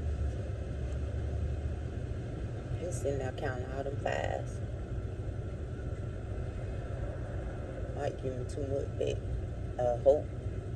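A car's engine hums low and steady inside the cabin.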